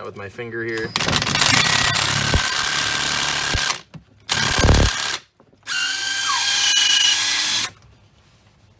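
A cordless power tool whirs loudly in several bursts.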